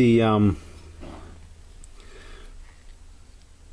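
A small brush scrubs against metal.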